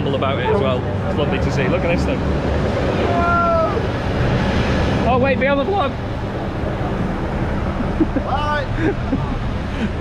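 A man talks casually close to the microphone, outdoors in wind.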